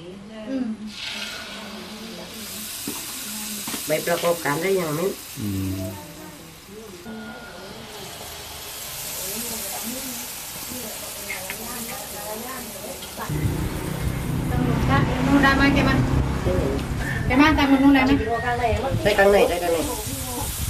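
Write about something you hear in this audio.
Batter sizzles and crackles in hot oil.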